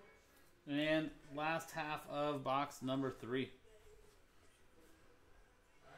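Cards shuffle and rustle in hands.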